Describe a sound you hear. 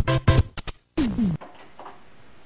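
Electronic video game beeps chirp, followed by a quick falling tone.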